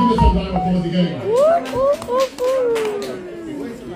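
A man raps into a microphone over a loudspeaker.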